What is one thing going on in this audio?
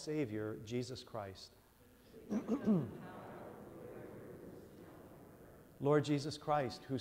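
A man speaks calmly through a microphone in a large echoing hall.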